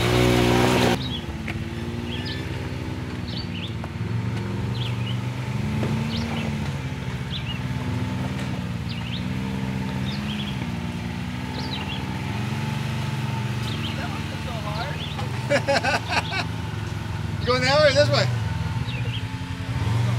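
An off-road vehicle's engine idles and revs at a distance.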